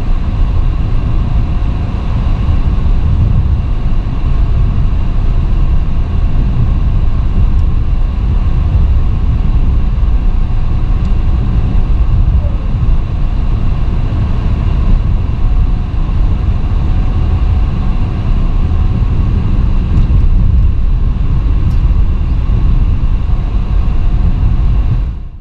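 Tyres roll and rumble on the road surface.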